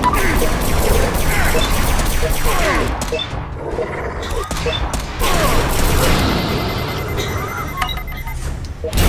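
Guns fire in quick, repeated bursts during a fight.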